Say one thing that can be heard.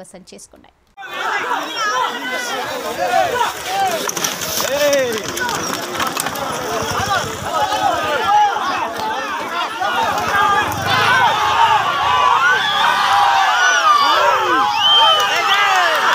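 A large outdoor crowd shouts and cheers excitedly.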